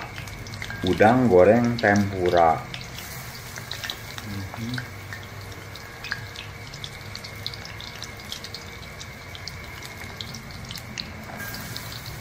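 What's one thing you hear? Hot oil sizzles and crackles as food fries.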